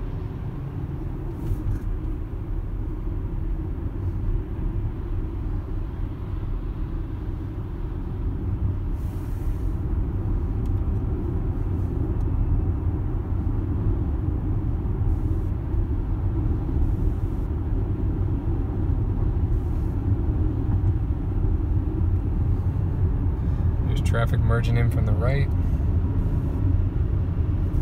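Tyres hum steadily on the road inside a moving car.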